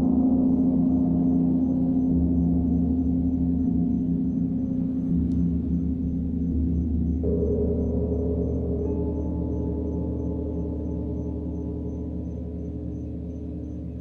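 A gong rumbles low and swells.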